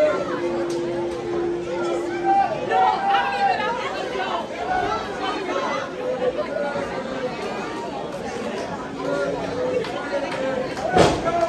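A crowd of men and women chatters and calls out in a large echoing hall.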